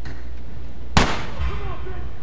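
A pistol fires a single loud shot with a short echo.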